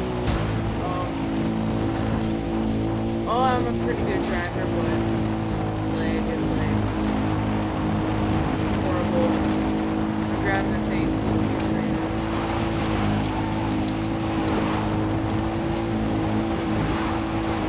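An engine drones steadily.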